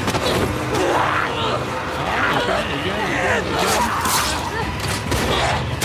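Monsters snarl and growl close by.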